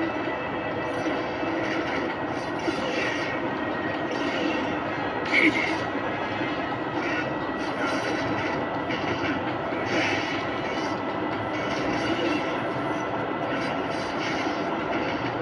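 Game music and battle sound effects play loudly from a television.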